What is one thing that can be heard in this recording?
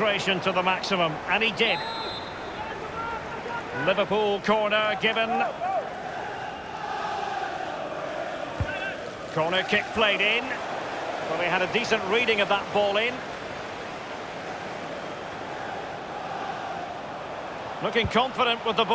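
A stadium crowd murmurs and roars steadily throughout.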